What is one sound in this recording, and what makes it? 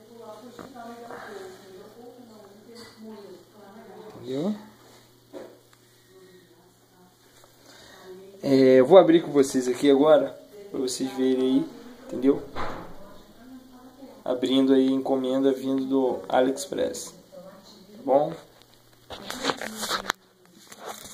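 A man speaks close to the microphone, calmly and casually.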